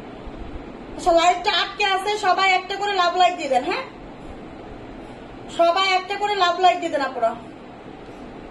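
A young woman speaks close by, in two short bursts with a pause between.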